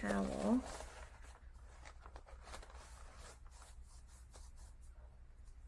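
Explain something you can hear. Paper crinkles and rustles under hands.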